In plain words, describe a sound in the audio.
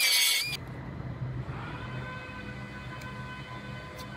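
Masking tape tears off a roll.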